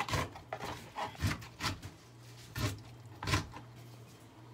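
A knife chops on a plastic board.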